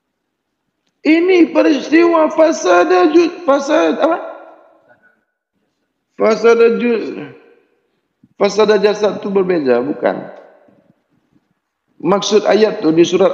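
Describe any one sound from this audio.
An elderly man speaks slowly in drawn-out phrases, with pauses between them.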